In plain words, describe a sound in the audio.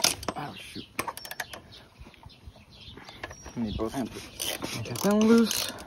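A ratchet wrench clicks as it turns a bolt.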